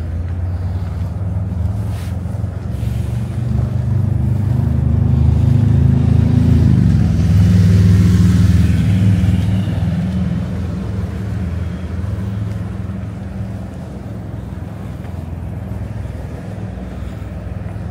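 Traffic rumbles steadily below, swelling as a vehicle passes.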